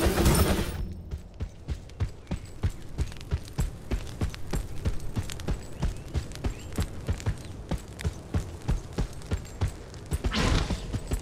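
Quick footsteps patter on stone.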